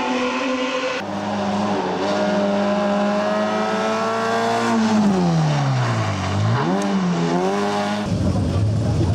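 A second rally car engine roars and revs as it passes.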